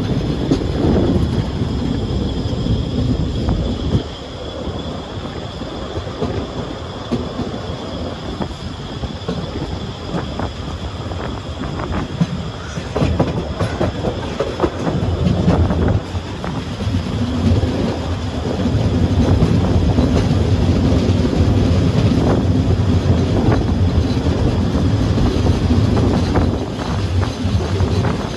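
A train rumbles and clatters steadily along the rails.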